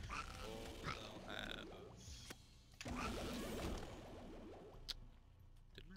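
Video game sound effects splat and pop in quick bursts.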